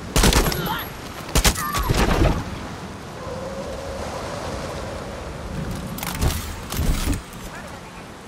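Rifle shots fire in loud bursts.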